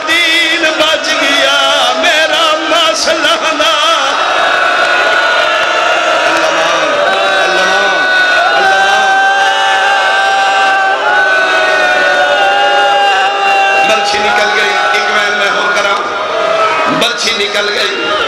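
A large crowd of men chants loudly in unison.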